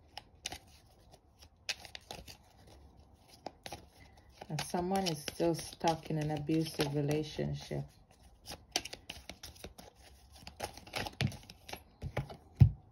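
Playing cards riffle and slap softly as they are shuffled close by.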